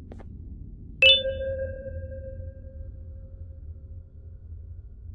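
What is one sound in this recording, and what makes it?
A ringing electronic chime sounds and slowly fades.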